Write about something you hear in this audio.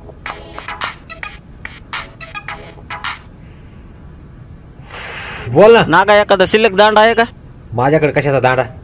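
A man talks loudly and with animation into a phone close by.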